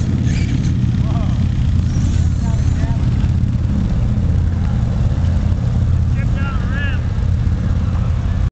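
Men talk and call out at a distance.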